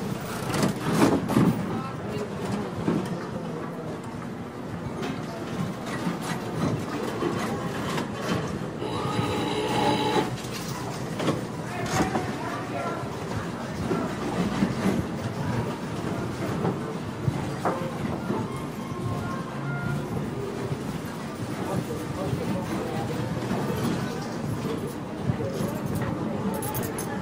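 A crowd of people murmurs and chatters in a large, busy hall.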